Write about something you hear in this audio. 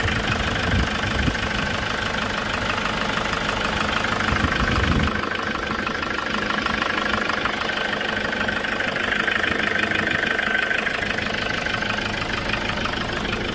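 A car engine idles steadily with a fast mechanical ticking.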